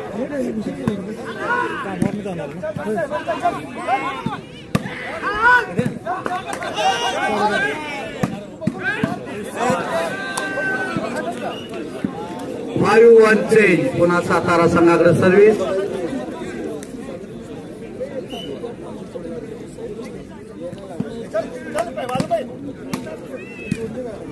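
Men shout and call out loudly across an open court outdoors.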